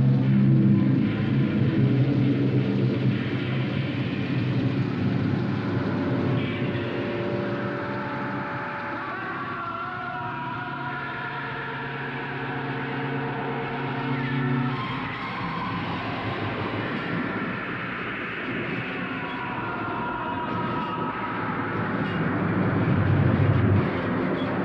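A young woman sings through a small speaker.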